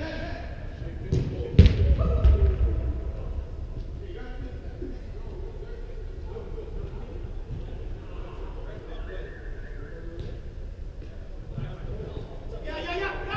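Distant players shout to each other in a large echoing hall.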